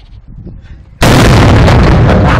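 An explosion booms loudly and close.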